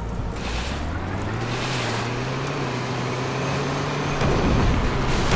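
A vehicle engine hums and revs as it drives over a dirt track.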